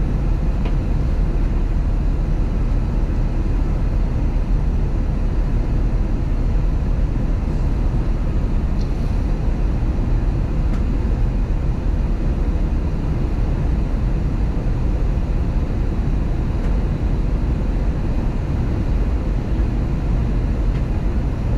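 A jet airliner's engines roar in a steady low drone inside the cabin.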